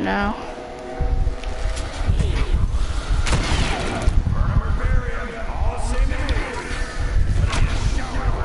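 A fiery magic weapon blasts with deep, rumbling roars.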